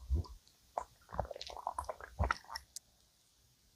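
Soft pastry tears apart close to a microphone.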